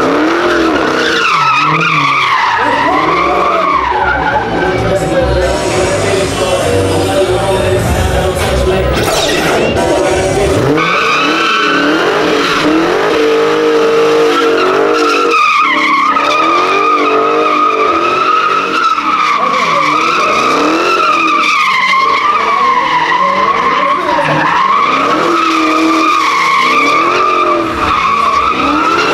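A car engine revs hard and loud, rising and falling.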